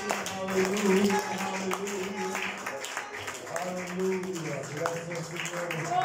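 An elderly man sings through a microphone.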